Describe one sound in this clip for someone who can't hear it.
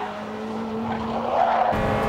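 Car tyres squeal as the car slides.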